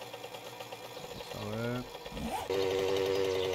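A motorbike engine revs up with a rising whine.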